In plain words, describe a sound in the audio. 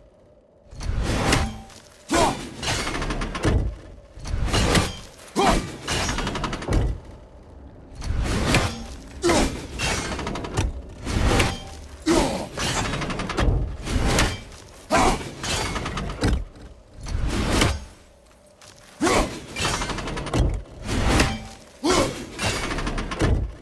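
An axe whooshes through the air again and again.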